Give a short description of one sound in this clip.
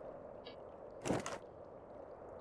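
A game menu opens with a short whooshing sound.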